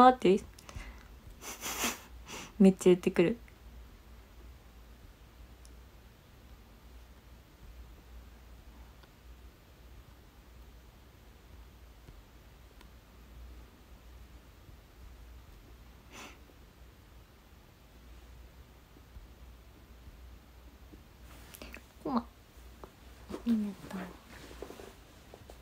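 A young woman talks close to a microphone, with long pauses.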